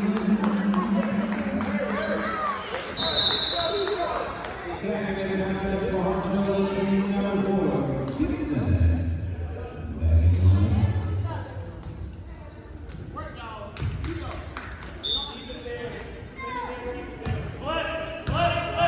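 Basketball shoes squeak sharply on the court.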